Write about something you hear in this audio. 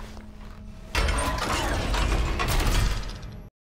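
Heavy armoured footsteps clank on a metal floor.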